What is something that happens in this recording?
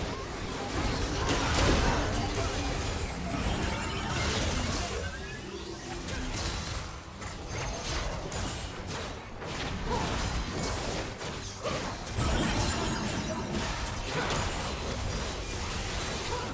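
Magic blasts and spell effects burst and crackle in quick succession.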